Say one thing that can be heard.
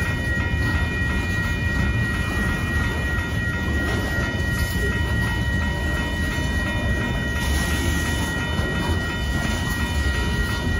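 A crossing bell rings steadily and quickly.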